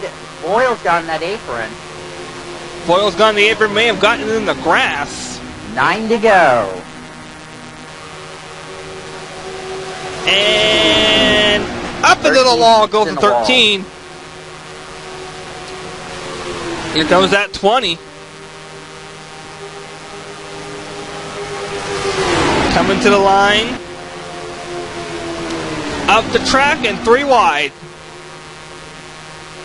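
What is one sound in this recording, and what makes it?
Race car engines roar steadily as cars pass in a pack.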